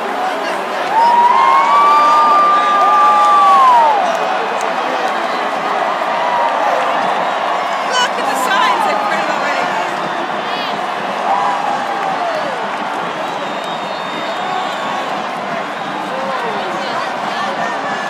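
Young men and women nearby shout and whoop loudly.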